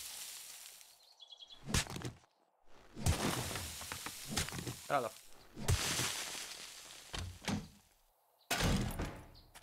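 A shovel digs into gravelly earth.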